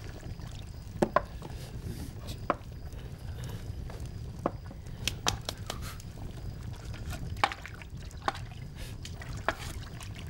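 Metal utensils clink against a pot.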